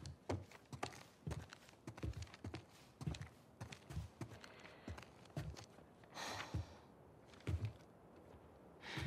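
Footsteps knock on a wooden floor.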